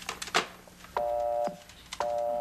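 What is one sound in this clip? A telephone rings loudly in short bursts.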